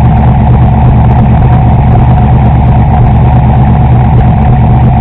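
A sports car engine idles with a deep, loud rumble close by.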